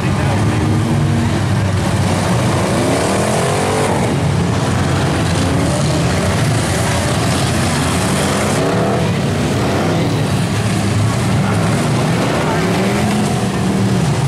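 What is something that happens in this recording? Car engines roar and rev loudly close by.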